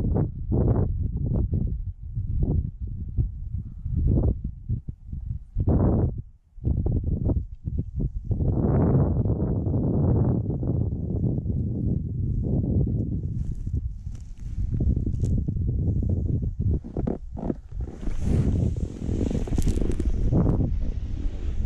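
Wind buffets the microphone in loud, gusty rumbles.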